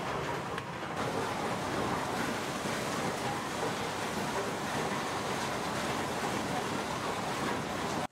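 A machine rumbles steadily with a noisy whir.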